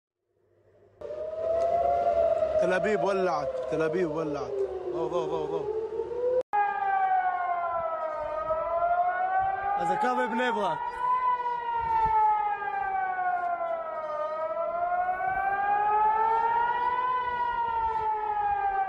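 An air raid siren wails outdoors, slowly rising and falling in pitch.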